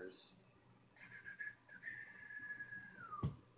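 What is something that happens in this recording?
A man whistles a long steady note that slides down at the end.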